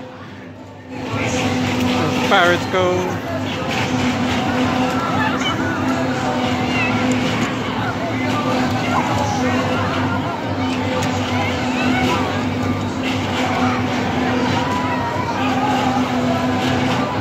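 A spinning ride whirls round with a steady mechanical hum.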